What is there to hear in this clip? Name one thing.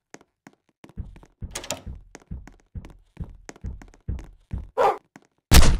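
Quick footsteps thud steadily across a hard floor.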